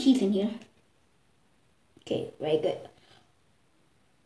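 A child speaks up close in short bursts.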